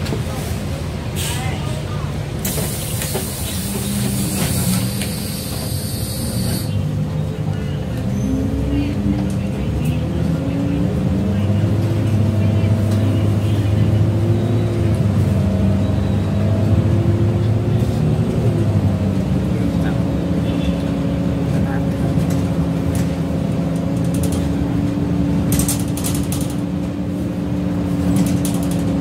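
A bus rattles and creaks as it drives over the road.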